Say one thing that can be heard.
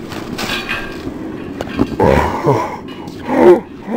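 A skateboard clacks against a metal rail.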